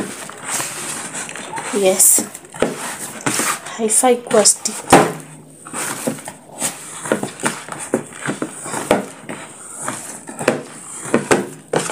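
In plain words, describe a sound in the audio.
Dough thumps against the side of a plastic bowl.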